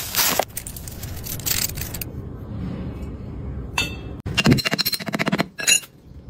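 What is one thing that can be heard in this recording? A metal rod scrapes through sand.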